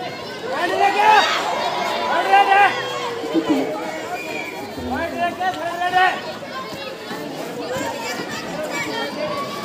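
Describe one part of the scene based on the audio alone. A crowd of young spectators cheers and shouts outdoors.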